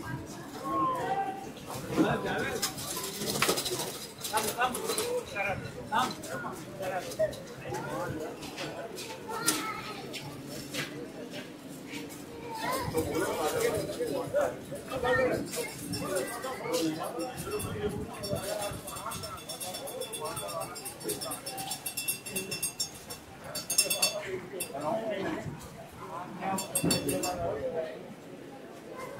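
Men's voices chatter nearby and in the distance.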